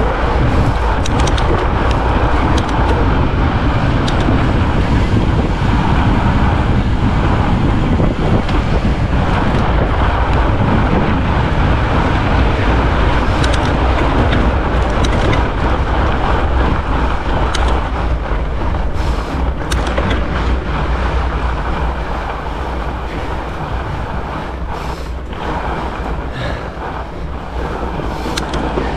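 Wind rushes loudly past, outdoors.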